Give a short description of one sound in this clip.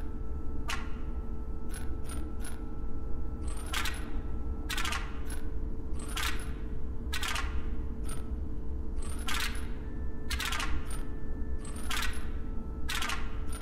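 Game tiles click and slide into place with short electronic chimes.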